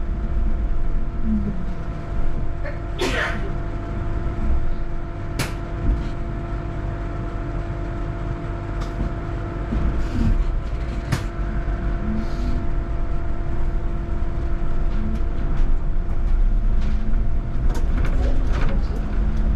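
Tyres rumble on the road surface.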